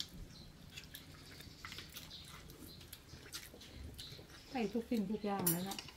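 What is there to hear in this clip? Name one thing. A fork and spoon clink against a plate.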